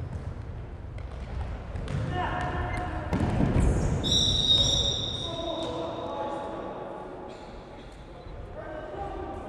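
A ball thuds against the floor and feet.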